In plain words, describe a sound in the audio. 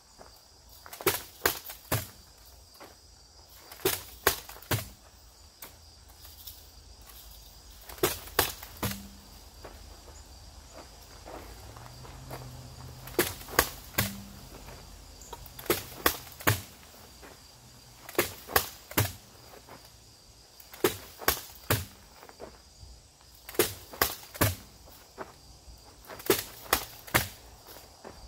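An axe strikes rubber tyres with heavy, repeated thuds, outdoors.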